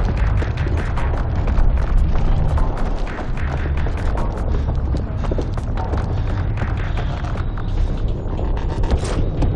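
Footsteps crunch quickly over rubble and gravel.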